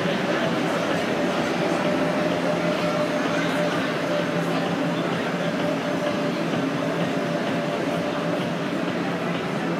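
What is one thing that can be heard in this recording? An ice resurfacing machine hums as it drives by.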